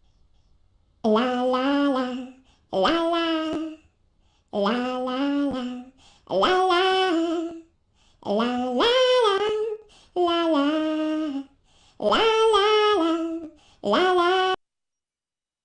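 A woman sings a cheerful tune in short phrases, close to the microphone.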